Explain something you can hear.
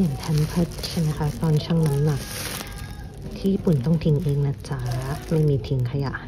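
A plastic bag rustles and crinkles in a hand.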